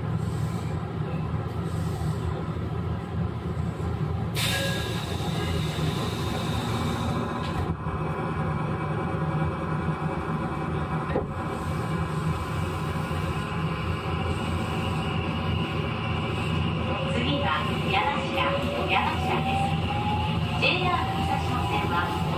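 A train rumbles slowly along the tracks nearby.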